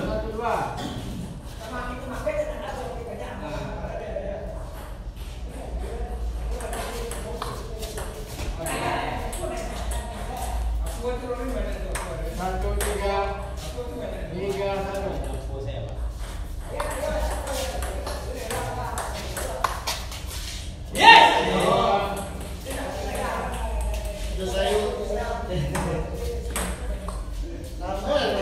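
Men talk and call out casually nearby in an echoing room.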